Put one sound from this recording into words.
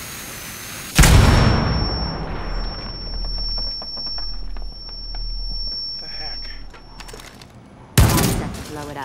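A loud explosion blasts through a wall, with a deep rumble.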